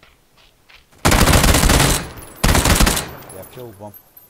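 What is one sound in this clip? Rapid gunfire bursts out loudly at close range.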